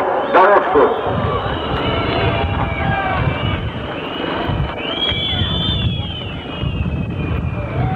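Motorcycle engines whine and rev as the bikes race past.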